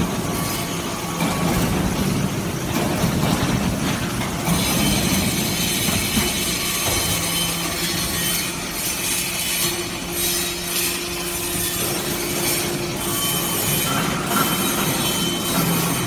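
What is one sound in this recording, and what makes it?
Metal clanks as the press compacts scrap.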